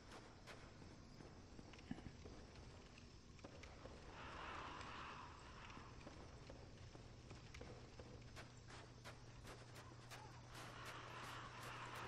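Footsteps clank on stone in armour.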